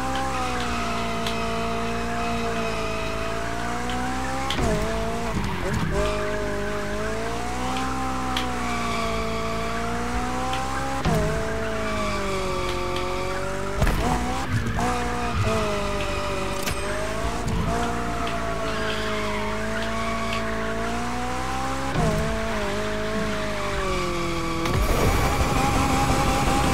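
Tyres screech while a car drifts.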